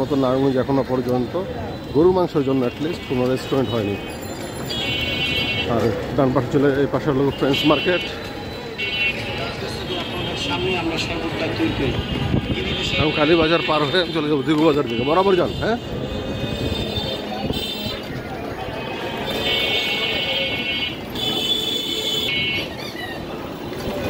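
Motorised rickshaws rumble along a busy street.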